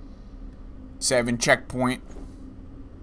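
A young man speaks briefly and with animation into a microphone, close up.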